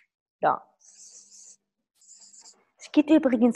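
A marker squeaks on paper.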